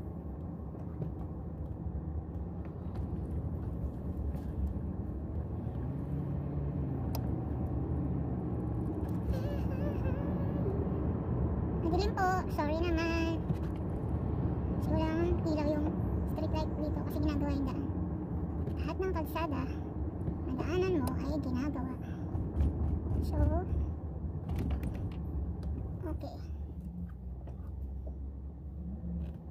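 A car's engine and tyres rumble steadily on the road.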